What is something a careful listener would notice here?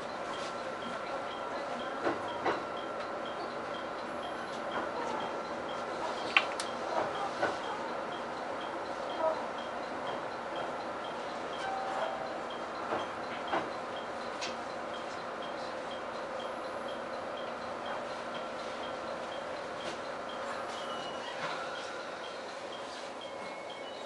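A train hums steadily as it rolls slowly along the track.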